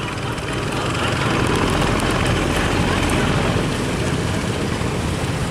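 Water churns and splashes against the hulls.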